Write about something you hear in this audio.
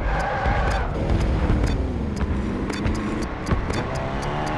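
A vehicle engine hums and revs.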